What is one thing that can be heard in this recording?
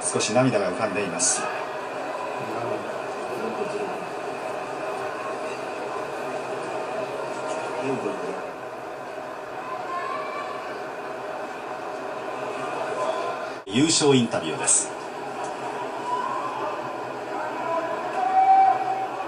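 A large crowd murmurs steadily in a big echoing hall.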